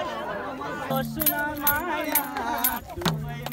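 A group of people clap their hands.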